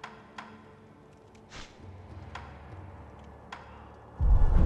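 Soft menu clicks tick now and then.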